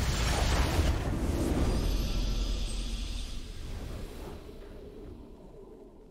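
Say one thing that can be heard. A triumphant game fanfare blares and slowly fades away.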